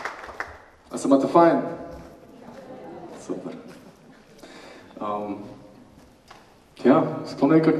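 A man speaks through a microphone and loudspeakers.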